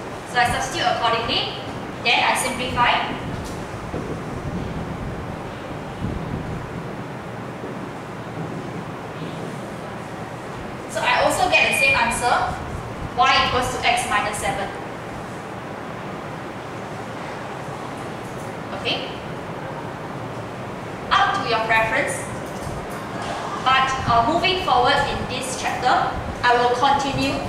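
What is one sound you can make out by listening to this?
A woman speaks clearly into a microphone, explaining calmly.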